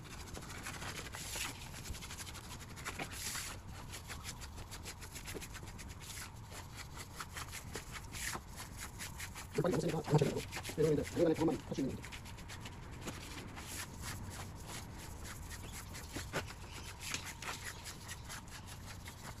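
A drill mixer churns and scrapes through sand.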